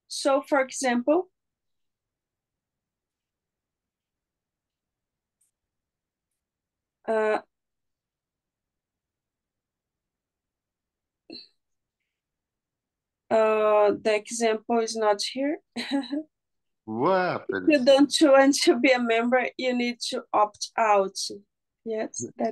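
A woman speaks calmly over an online call, in short bursts with long pauses.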